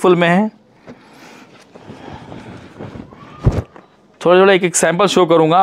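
Fabric rustles as a garment is unfolded and handled.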